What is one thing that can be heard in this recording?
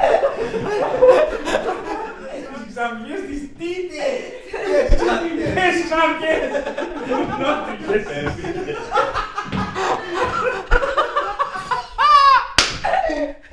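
A man laughs loudly, close by.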